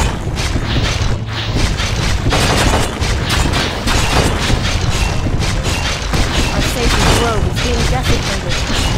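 Magic spells crackle and whoosh in rapid bursts.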